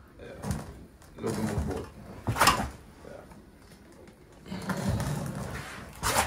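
Thick liquid pours and splashes from a bucket onto a floor.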